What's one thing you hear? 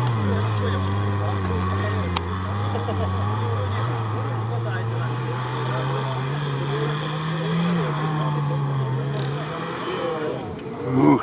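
A four-wheel-drive engine roars and revs hard nearby.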